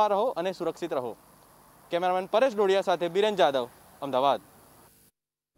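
A young man speaks steadily into a handheld microphone, close up.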